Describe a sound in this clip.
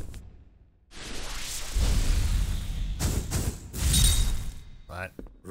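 Flames burst and roar with a whoosh.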